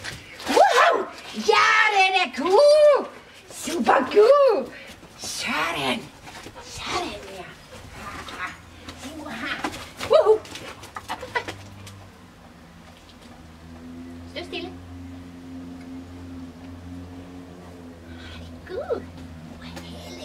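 A woman talks to a dog in an animated, coaxing voice nearby.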